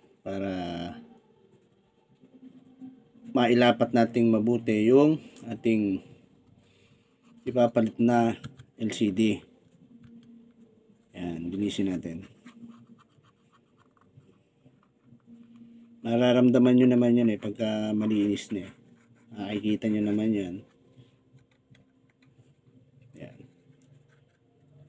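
A plastic pry tool scrapes and clicks against a phone's edge.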